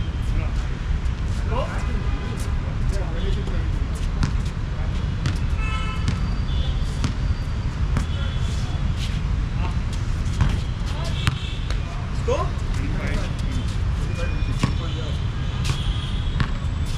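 Young men call out to each other across an open court.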